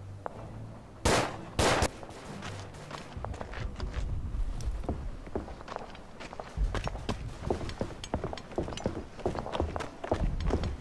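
Distant gunfire pops and crackles.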